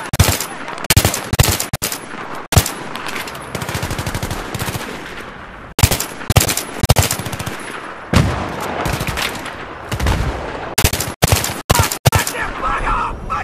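A rifle fires loud sharp shots in rapid bursts.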